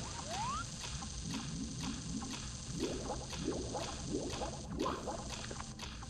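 Water splashes as a character swims.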